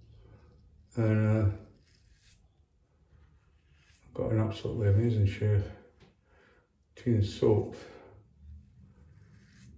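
A razor scrapes across stubble.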